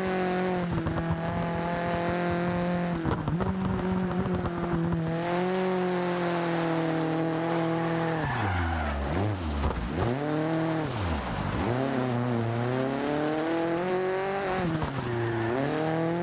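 A rally car engine revs hard, rising and falling in pitch through gear changes.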